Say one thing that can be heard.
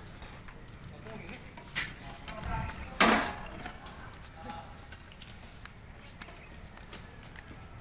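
A metal cart rattles as it is rolled.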